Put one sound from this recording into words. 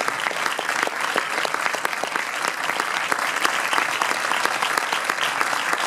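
A crowd applauds steadily in an echoing hall.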